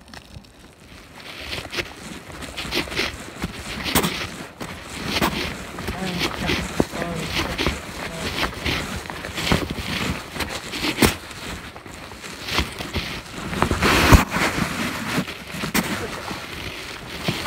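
Footsteps crunch on dry leaves and gravel close by.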